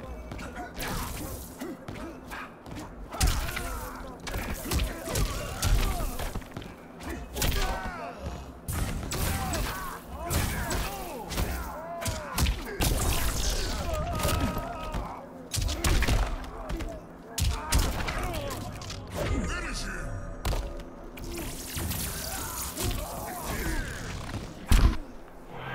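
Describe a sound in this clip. Punches and kicks land with heavy thuds in a fighting game.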